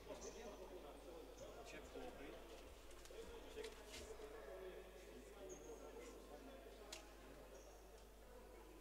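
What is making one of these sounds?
Sneakers squeak sharply on a wooden floor in an echoing hall.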